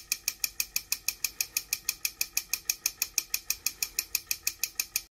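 A small model compressor ticks rapidly and evenly as it runs.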